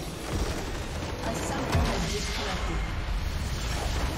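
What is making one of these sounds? A game base crystal explodes with a boom.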